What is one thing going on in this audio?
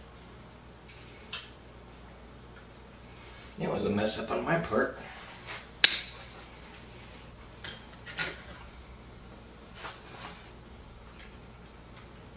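Plastic parts click and clack as a device is handled.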